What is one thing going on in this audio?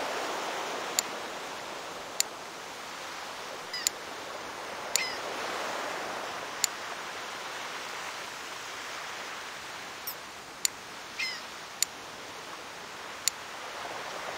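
Menu clicks tick sharply now and then.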